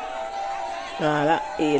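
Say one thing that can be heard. A woman sings out a loud high line close by.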